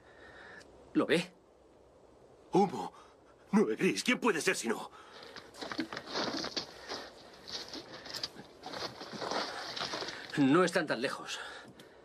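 A second man answers quietly.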